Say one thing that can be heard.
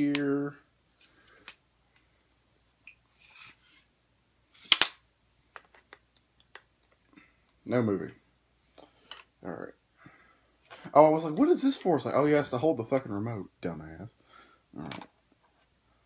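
Plastic parts click and knock as they are fitted together.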